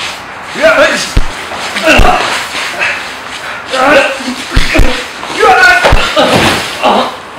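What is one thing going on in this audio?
Two young men scuffle with heavy thuds and blows.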